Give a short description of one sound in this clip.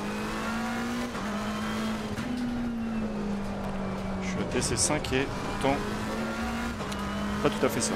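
A racing car engine drones steadily, its pitch shifting with the gears.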